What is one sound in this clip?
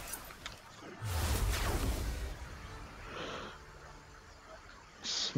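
A deep rushing whoosh swells and roars.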